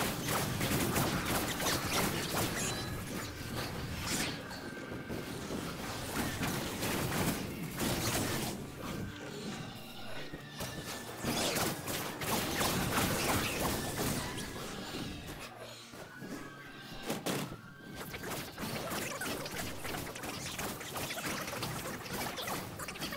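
Fantasy game combat sounds clash with spell blasts and hits.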